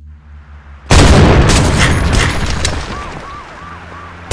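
A car explodes with a loud bang.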